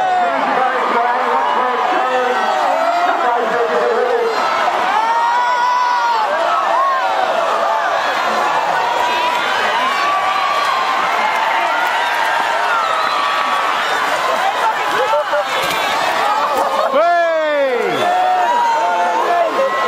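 A large outdoor crowd cheers and shouts steadily.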